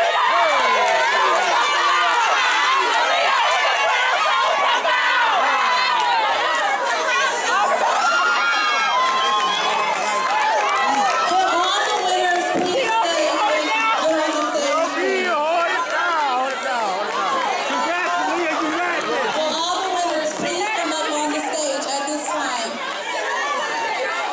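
A crowd of young women and men cheers and screams excitedly, close by.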